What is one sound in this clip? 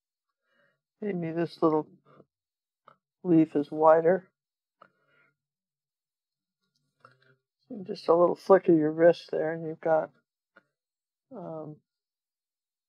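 A woman talks calmly and close to a microphone, in short phrases.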